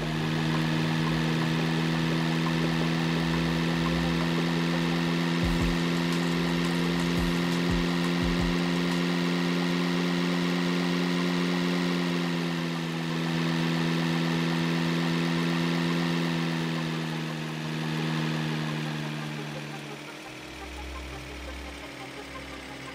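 A heavy truck engine drones steadily, then eases off.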